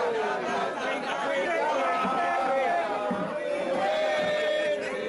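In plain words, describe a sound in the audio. A crowd of men and women sings and chants together outdoors.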